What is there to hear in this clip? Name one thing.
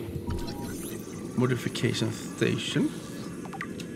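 A handheld scanner whirs and chirps as it scans.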